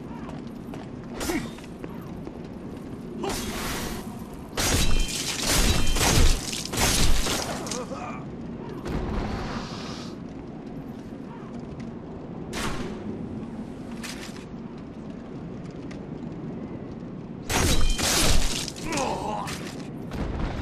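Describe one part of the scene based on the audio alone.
Swords clash and metal clangs in a fight.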